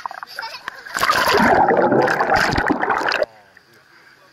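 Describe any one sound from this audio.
A child splashes into water with a loud, rushing gurgle.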